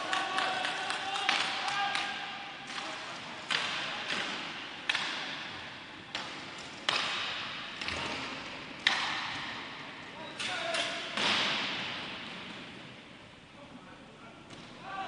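Hockey sticks clack sharply against a ball, echoing through a large hall.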